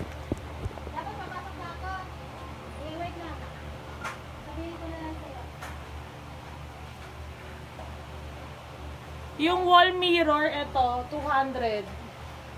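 A young woman speaks close to a phone microphone, at times quietly and then with animation.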